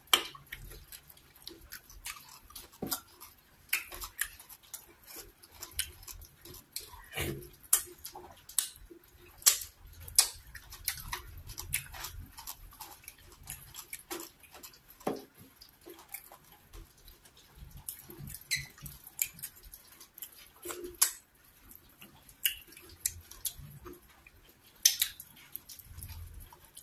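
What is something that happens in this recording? A young woman chews and smacks her lips close to a microphone.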